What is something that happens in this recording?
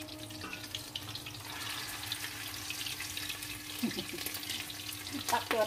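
Oil sizzles and crackles in a frying pan.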